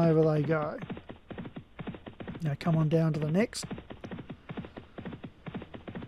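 Many horses' hooves pound rapidly on turf.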